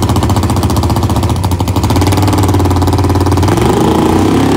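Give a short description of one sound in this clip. A drag racing car's engine idles close by with a loud, lumpy rumble.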